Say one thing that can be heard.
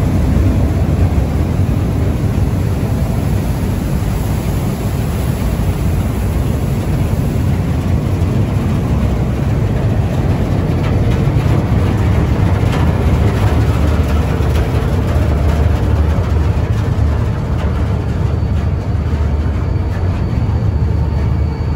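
A boat's engine rumbles steadily.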